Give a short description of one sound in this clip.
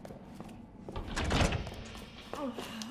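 A heavy door slides open with a loud whoosh.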